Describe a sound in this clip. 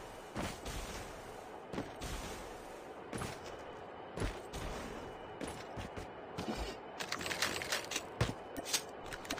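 Footsteps thud quickly on dirt and grass.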